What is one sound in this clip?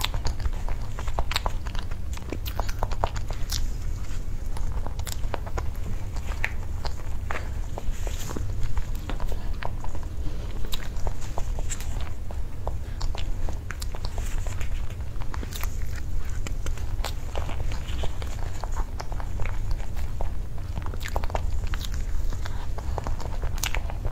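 A spoon scrapes and taps against a plastic cup.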